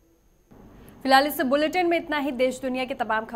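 A young woman speaks clearly and steadily into a microphone.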